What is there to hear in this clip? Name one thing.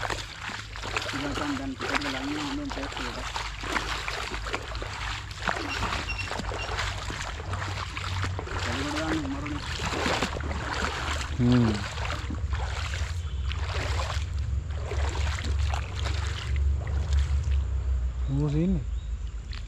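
Feet splash while wading through a shallow stream.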